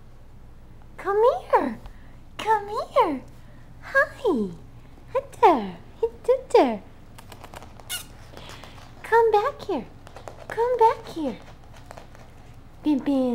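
A puppy yips and whines in short high falling cries.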